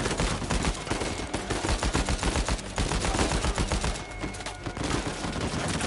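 Rapid gunfire cracks and booms.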